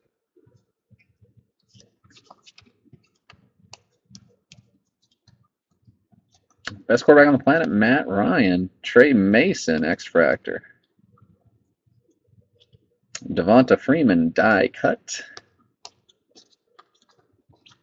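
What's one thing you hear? Trading cards softly slide and flick against each other as they are leafed through by hand.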